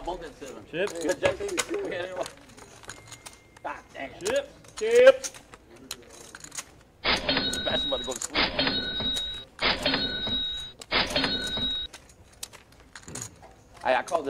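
Poker chips click and clatter as they are stacked.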